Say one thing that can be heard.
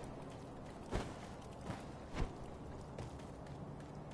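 Footsteps thud on soft ground.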